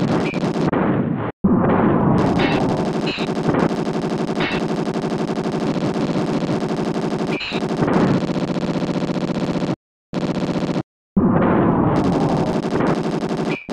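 Video game gunshots fire in short bursts.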